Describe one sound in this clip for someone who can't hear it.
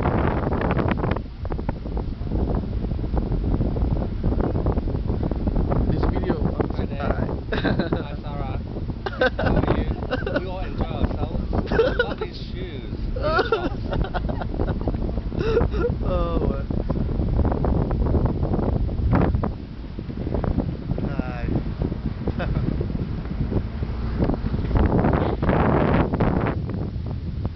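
Wind rumbles loudly against a microphone outdoors.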